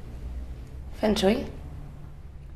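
A man asks a short question nearby.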